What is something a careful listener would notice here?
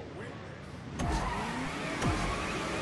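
Racing kart engines rumble and rev.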